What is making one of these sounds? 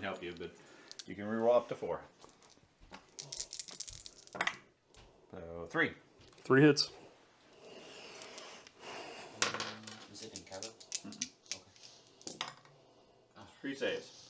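Dice tumble softly onto a felt tray.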